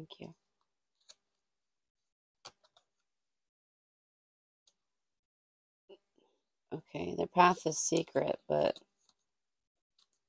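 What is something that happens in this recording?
Playing cards rustle and flick as they are shuffled.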